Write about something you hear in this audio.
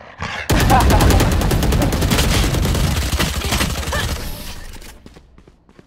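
Rapid gunfire rattles loudly and fades.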